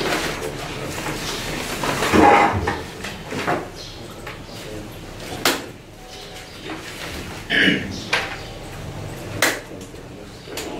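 A man speaks calmly to a small group.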